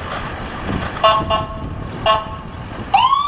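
A vehicle horn blasts in short bursts.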